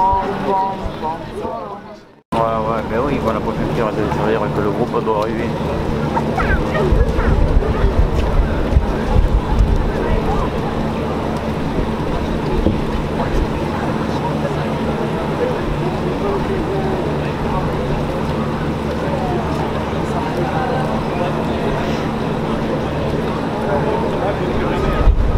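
Footsteps splash on a wet pavement.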